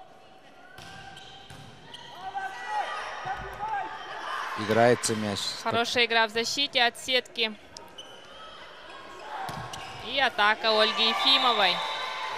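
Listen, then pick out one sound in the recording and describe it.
A volleyball is struck and thuds in a large echoing hall.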